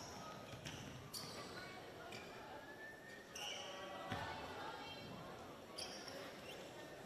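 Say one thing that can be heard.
Sneakers squeak on a hard court in an echoing gym.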